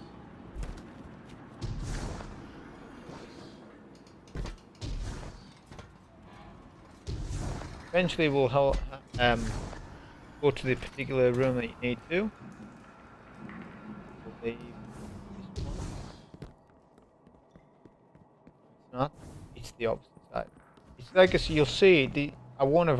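Footsteps clank on metal walkways and stone floors.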